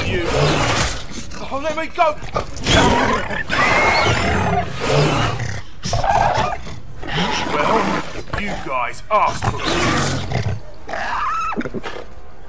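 Beasts snarl and growl.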